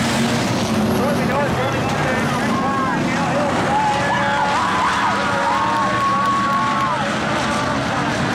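Race car engines roar and rev loudly outdoors.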